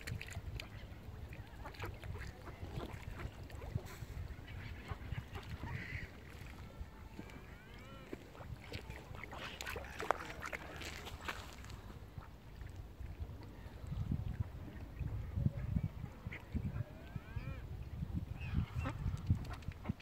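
Small waves lap at the shore.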